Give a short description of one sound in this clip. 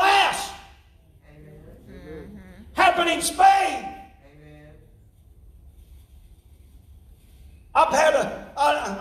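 A man preaches loudly and with animation.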